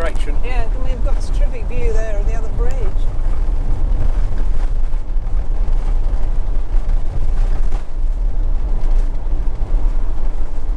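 A vehicle's engine and tyres rumble steadily on the road.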